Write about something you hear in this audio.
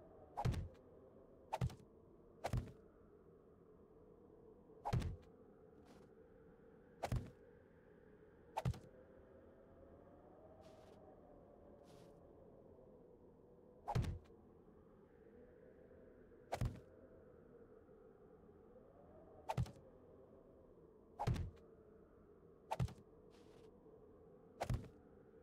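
Wooden blocks thud into place one after another, at uneven intervals.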